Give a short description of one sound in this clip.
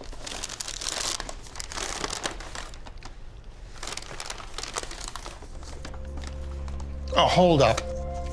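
Foil and paper rustle as hands unwrap food.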